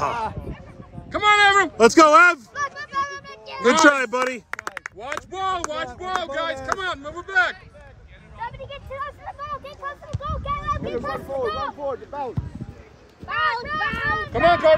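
Adults nearby cheer and shout loudly.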